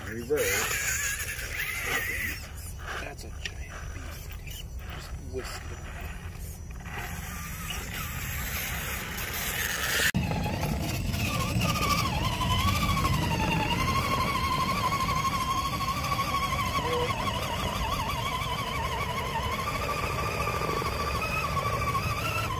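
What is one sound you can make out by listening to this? Plastic tyres scrape and grind against rock.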